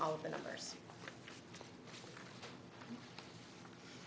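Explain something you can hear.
Paper rustles as a woman handles sheets.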